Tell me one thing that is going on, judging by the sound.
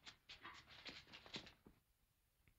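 Men scuffle, shoes scraping and stamping on pavement.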